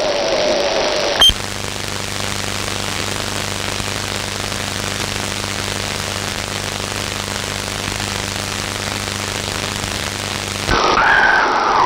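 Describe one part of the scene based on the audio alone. Radio static hisses steadily from a receiver.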